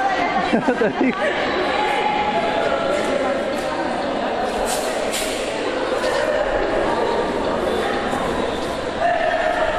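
Men and women chat in the background of a large, echoing hall.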